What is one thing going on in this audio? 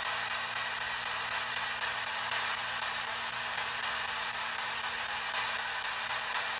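A radio hisses with steady, crackling static that flickers rapidly.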